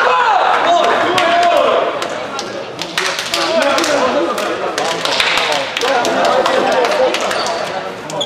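Players' hands slap together in high fives.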